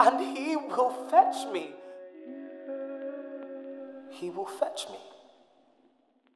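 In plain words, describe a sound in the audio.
A man sings out loudly and with feeling, close by.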